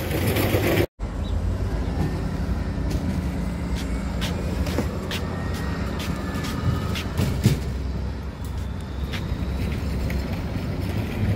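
A bus engine hums as it pulls away and fades.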